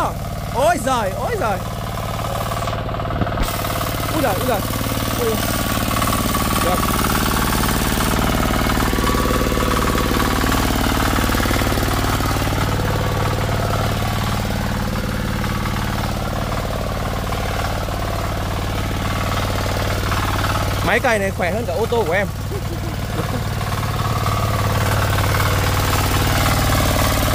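A small engine runs with a steady low chug.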